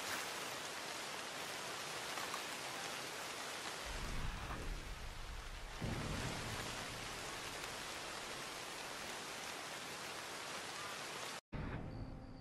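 Wind rustles steadily through the trees outdoors.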